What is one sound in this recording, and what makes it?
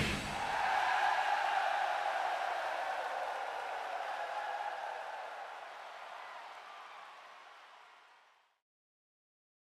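A large crowd cheers and applauds in a big hall, slowly fading away.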